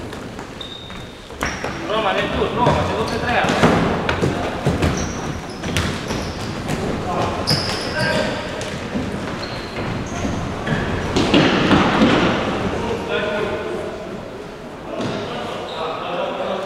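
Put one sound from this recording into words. A ball is kicked with sharp thuds in an echoing hall.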